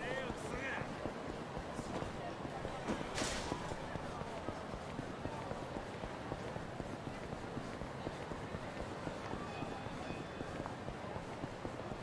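Quick footsteps run on pavement.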